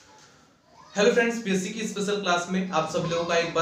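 A young man speaks calmly and clearly into a close microphone.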